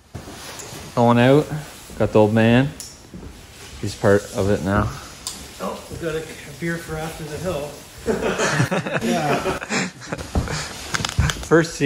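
A middle-aged man talks casually close by.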